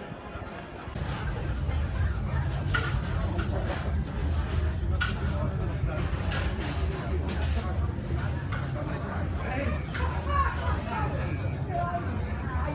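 A knife scrapes and taps on a paper plate.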